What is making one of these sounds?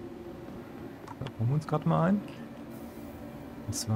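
Sliding metal doors open with a soft hiss.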